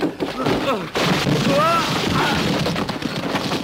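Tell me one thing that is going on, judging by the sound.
A wooden structure crashes down and rubble tumbles.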